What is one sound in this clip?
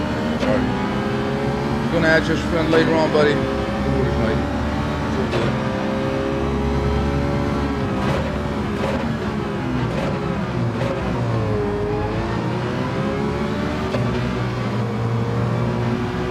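A racing car engine roars, its pitch rising and falling as it shifts gears.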